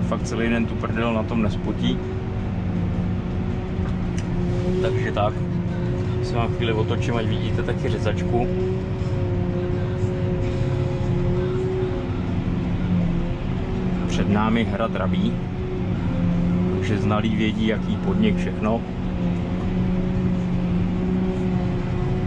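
A tractor engine drones steadily from inside the cab.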